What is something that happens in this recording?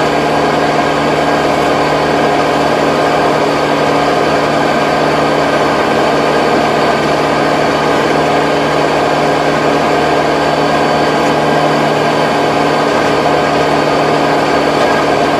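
A tractor engine drones loudly and steadily close by.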